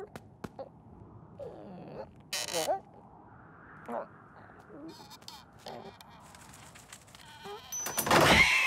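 Bird feet tap on a hollow log.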